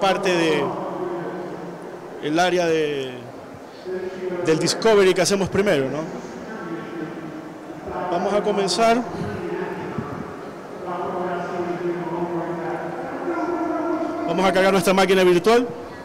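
A man speaks with animation through a microphone and loudspeakers in a reverberant hall.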